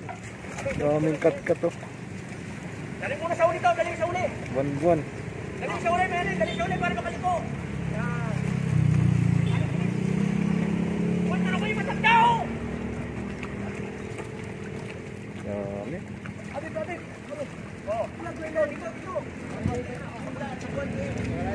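Water splashes as a net is hauled from the water.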